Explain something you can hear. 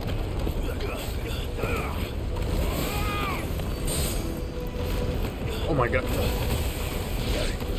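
Blows and slashes hit rapidly in a fight.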